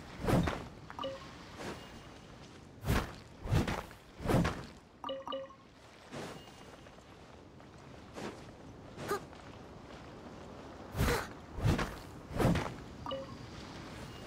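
A short chime rings as an item is picked up.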